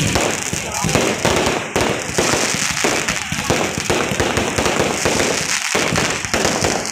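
Fireworks burst loudly overhead in rapid, crackling bangs.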